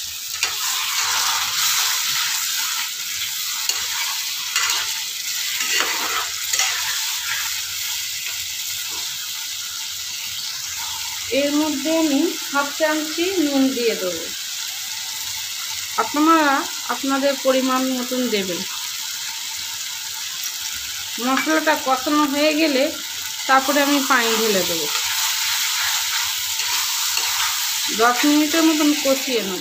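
A spatula scrapes and stirs against the pan.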